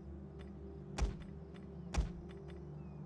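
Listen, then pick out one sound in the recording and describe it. Interface clicks sound sharply a few times.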